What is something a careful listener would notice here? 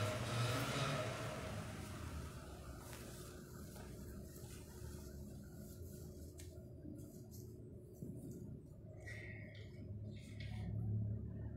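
An elderly woman reads aloud calmly in a slightly echoing room.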